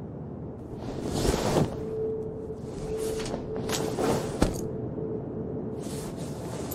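Bedding rustles as a woman shifts on a bed.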